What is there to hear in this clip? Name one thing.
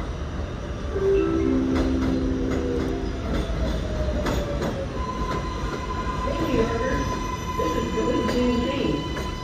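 A subway train rumbles into the station on elevated tracks.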